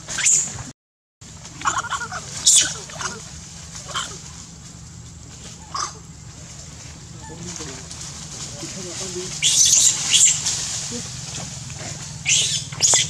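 Monkeys rustle through dry leaves and undergrowth.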